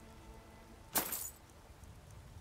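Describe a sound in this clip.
Coins jingle briefly.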